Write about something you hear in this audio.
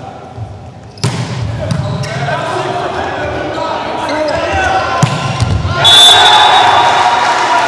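A volleyball is struck hard with a loud smack.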